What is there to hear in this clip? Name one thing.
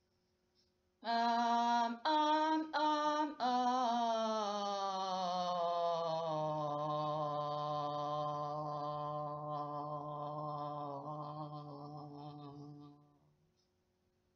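A young woman sings a long held note close by, sliding down in pitch.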